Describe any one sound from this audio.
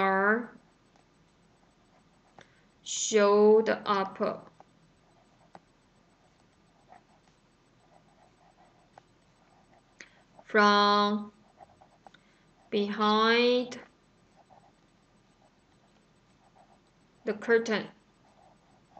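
A woman speaks slowly and clearly into a microphone, pausing between short phrases.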